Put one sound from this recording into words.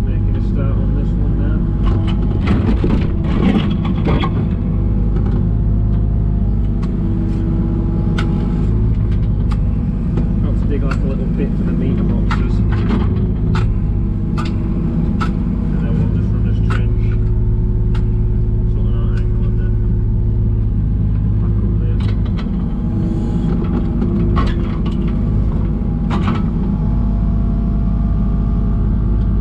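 A digger bucket scrapes and knocks against soil and stones.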